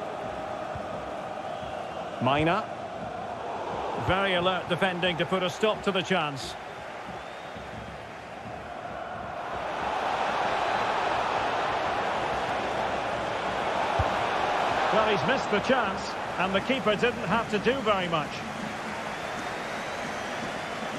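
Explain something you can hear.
A stadium crowd murmurs and cheers steadily throughout.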